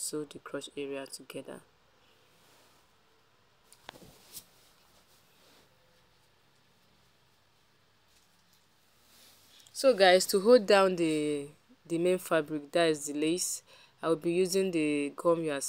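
Fabric rustles softly as it is folded and smoothed.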